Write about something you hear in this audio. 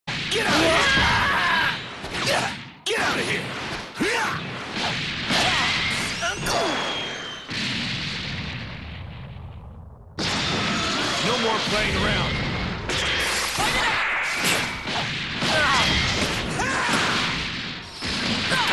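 Punches and kicks land with sharp, heavy thuds in quick bursts.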